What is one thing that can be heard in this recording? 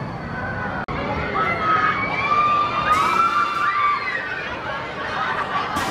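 Riders scream on a swinging fairground ride.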